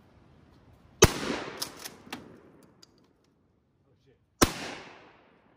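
A shotgun fires loud shots outdoors, echoing off into the distance.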